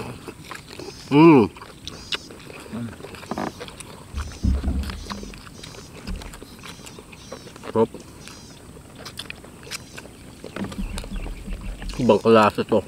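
Two young men chew and smack their lips loudly, close up.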